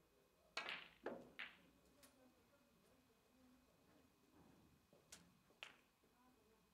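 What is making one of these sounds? Snooker balls knock together and hit the cushions.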